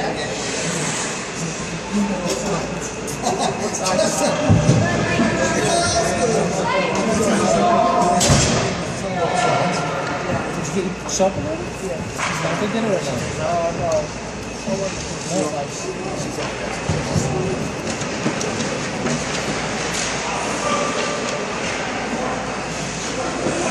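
Children's voices call out and shout in a large echoing rink.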